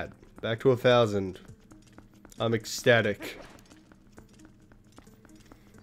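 Footsteps patter quickly across a stone floor.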